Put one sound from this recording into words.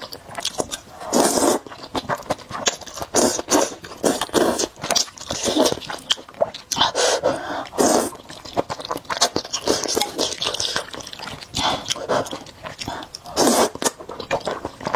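A young woman slurps noodles loudly, close to the microphone.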